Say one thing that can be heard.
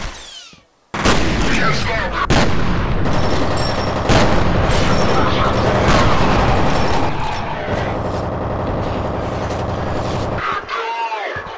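Gunshots fire in rapid bursts, echoing loudly.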